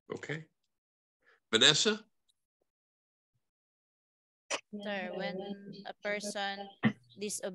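A woman speaks in bursts through an online call.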